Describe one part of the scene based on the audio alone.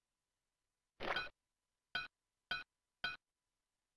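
Short bright chimes ring out in quick succession as coins are picked up in a game.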